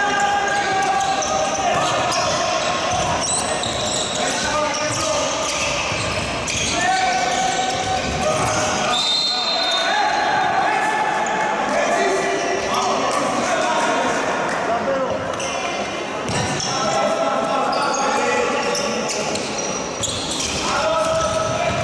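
A crowd shouts and chants in an echoing sports hall.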